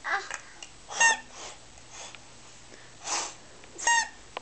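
A toddler babbles and squeals.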